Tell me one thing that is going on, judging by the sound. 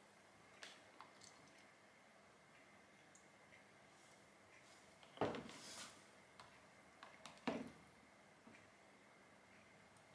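Thick liquid pours into a plastic jug.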